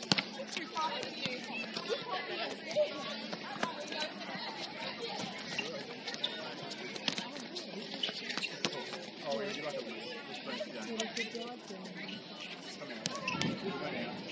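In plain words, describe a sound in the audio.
Young women chatter and call out across an open outdoor court.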